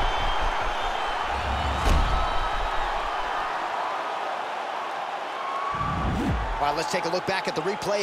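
Punches thud against a fighter's body.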